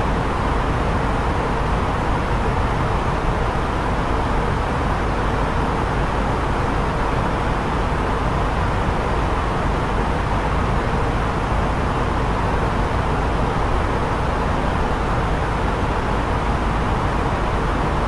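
Jet engines drone steadily in flight.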